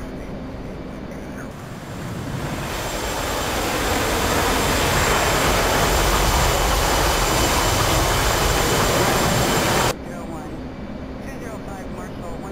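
A muffled jet engine hums low and steady.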